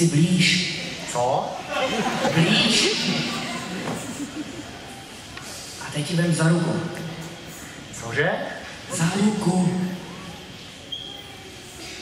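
A young man speaks in a large echoing hall.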